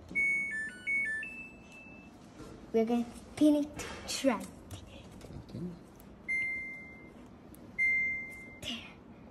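A washing machine beeps in short electronic tones.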